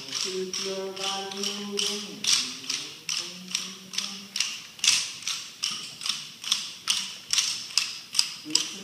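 Wooden sticks click together in a steady rhythm.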